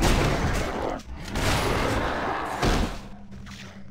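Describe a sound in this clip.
A creature roars and dies with a wet splatter.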